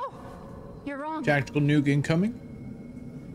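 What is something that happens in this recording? A woman cries out in protest.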